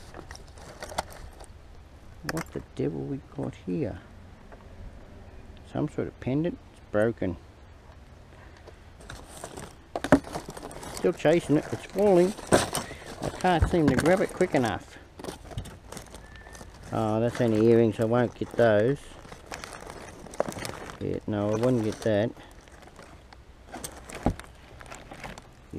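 Plastic rubbish rustles and crinkles as hands rummage through a bin.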